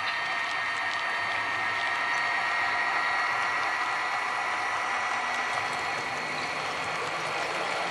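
A model train's electric motor whines as it runs along the track.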